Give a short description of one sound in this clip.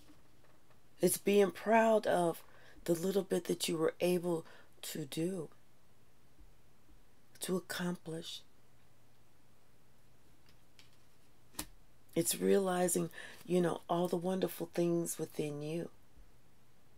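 A woman speaks calmly and close by, pausing now and then.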